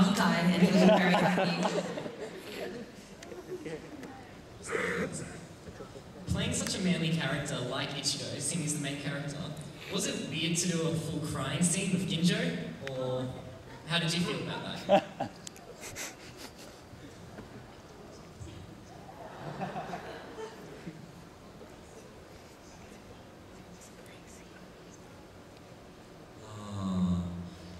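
A young man speaks calmly into a microphone over loudspeakers in a large hall.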